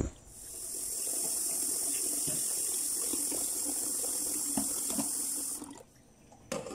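Hot oil sizzles loudly in a pot.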